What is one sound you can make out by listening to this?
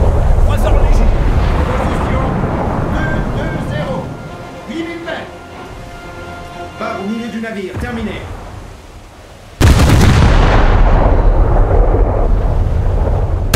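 Shells splash and explode on the water with rumbling booms.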